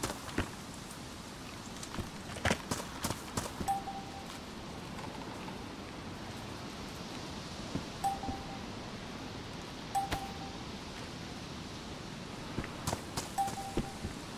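Light wind blows steadily outdoors.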